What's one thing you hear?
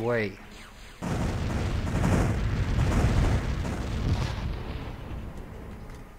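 Weapons fire and explosions rumble loudly.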